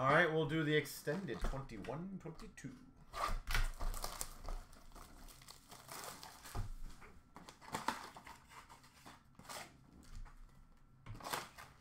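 A cardboard box rattles and scrapes as it is handled.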